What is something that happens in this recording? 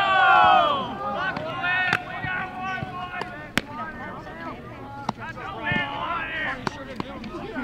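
Several people call out and cheer.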